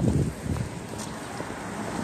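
A car drives past.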